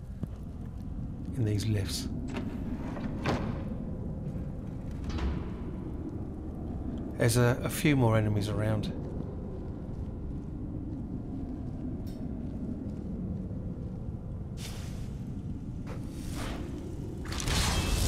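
A low hum drones.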